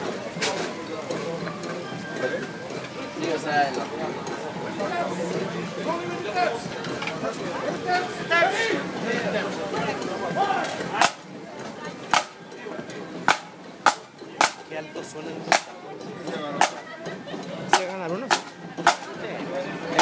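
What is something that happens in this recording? A drum is struck in sharp single beats.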